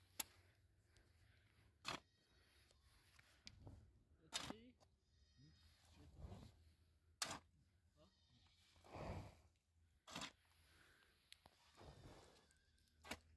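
A shovel scrapes and digs into stony soil.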